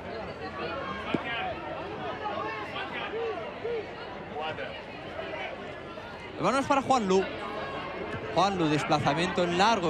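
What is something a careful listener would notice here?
Spectators chatter in the distance.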